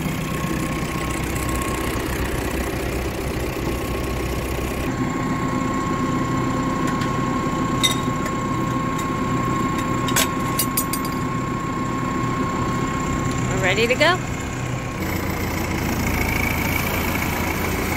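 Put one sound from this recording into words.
A tractor engine idles with a steady rumble close by.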